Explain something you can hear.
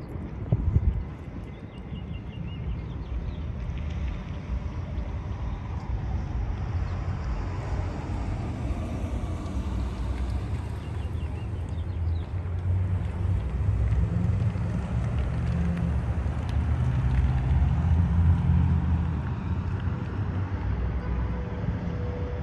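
Wind buffets the microphone outdoors during a storm.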